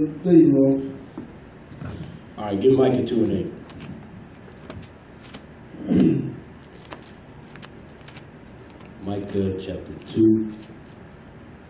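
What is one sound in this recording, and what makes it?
A young man speaks into a microphone in short, calm phrases with pauses between them.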